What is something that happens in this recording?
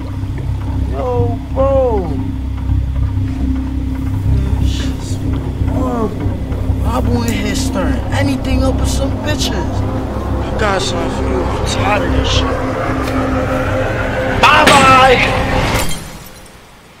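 A young man talks excitedly over the music.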